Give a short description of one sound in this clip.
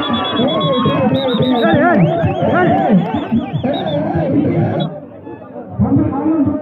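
A crowd of young men shouts and cheers excitedly outdoors.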